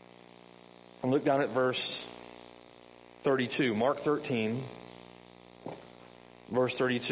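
A middle-aged man speaks calmly into a microphone in an echoing hall, with pauses.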